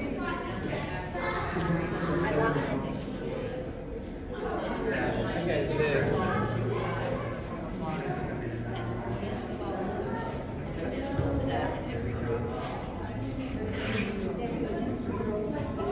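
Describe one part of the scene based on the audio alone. Young children talk and chatter nearby in an echoing space.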